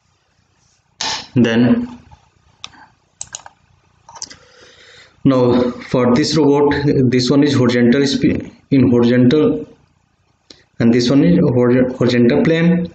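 A man speaks calmly and steadily into a close microphone.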